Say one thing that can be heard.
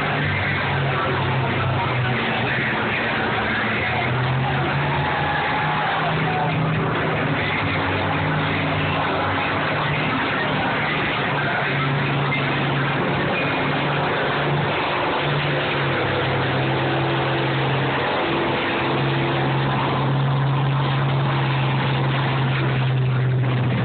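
Combine engines roar and rumble steadily close by.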